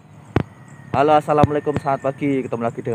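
A young man talks calmly, close by.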